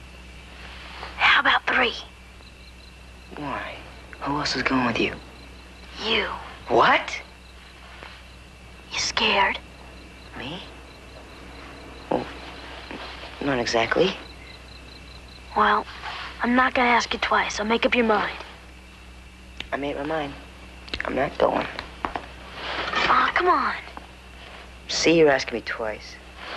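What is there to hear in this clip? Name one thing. A young boy speaks nearby in a tense, pleading voice.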